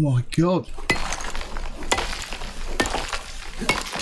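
A stone tool strikes rock with sharp knocks.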